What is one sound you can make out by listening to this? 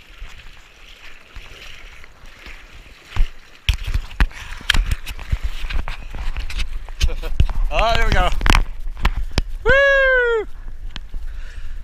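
Water splashes and sloshes close by as a surfboard is paddled.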